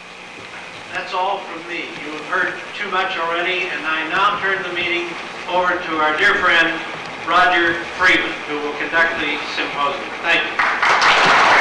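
An elderly woman speaks calmly into a microphone.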